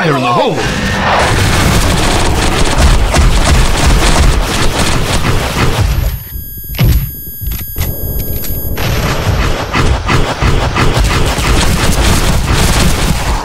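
Heavy footsteps thud as a large creature runs.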